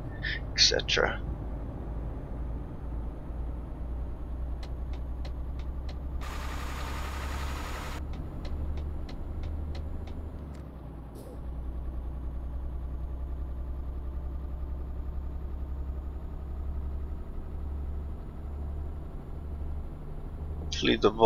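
A truck engine hums low and steady.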